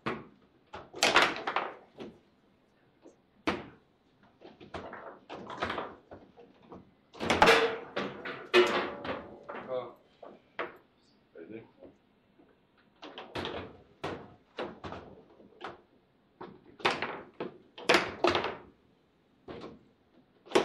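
A ball clacks against the players of a foosball table.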